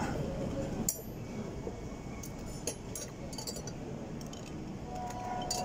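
Metal tongs clink lightly against glassware.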